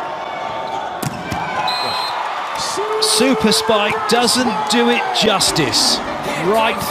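A volleyball is smacked hard.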